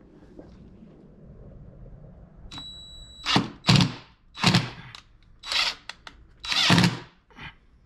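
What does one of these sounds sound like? A hand tool scrapes on wood.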